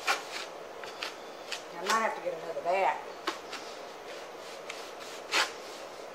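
A cloth rubs over a wooden board.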